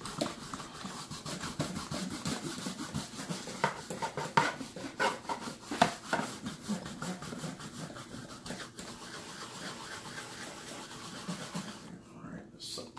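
A stiff brush scrubs back and forth over fabric upholstery.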